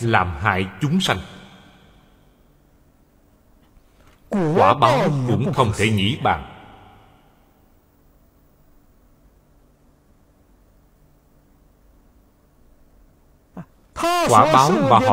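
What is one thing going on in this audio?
An elderly man speaks calmly and slowly into a close microphone, with long pauses.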